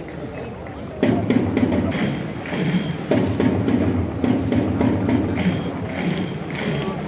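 A crowd close by cheers and chants loudly.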